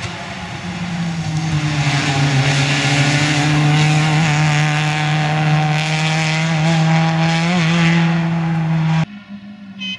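A car engine roars at high, steady revs as the car speeds past and drives away.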